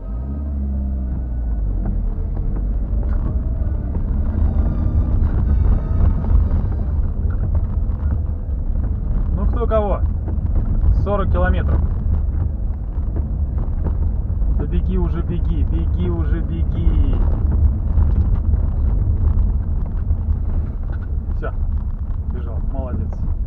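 Tyres crunch and rumble over a rough dirt track.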